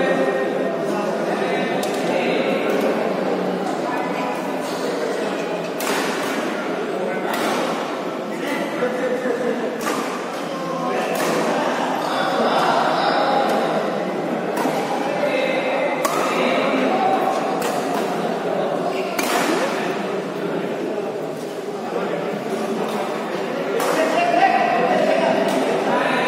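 A crowd of spectators chatters throughout in a large echoing hall.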